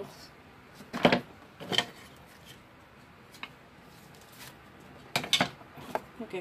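Wooden utensils knock and clatter on a table.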